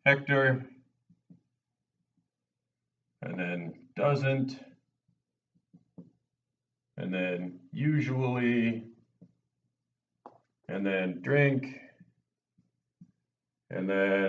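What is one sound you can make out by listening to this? A middle-aged man speaks calmly in short bursts with pauses.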